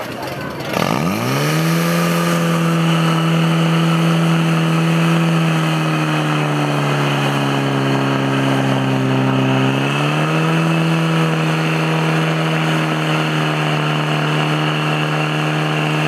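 A petrol pump engine starts with a roar and runs loudly, its pitch dropping and rising again.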